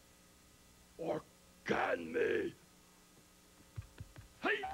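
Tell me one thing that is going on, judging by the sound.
A man speaks in a deep, gravelly voice with animation, close by.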